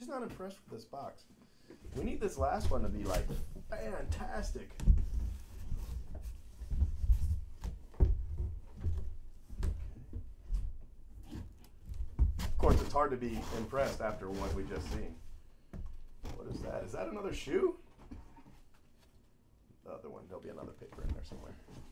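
Cardboard boxes scrape, rustle and thump as they are handled.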